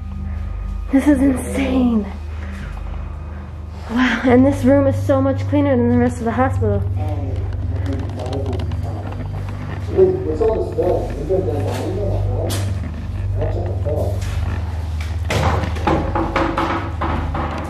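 A man talks calmly nearby in an echoing room.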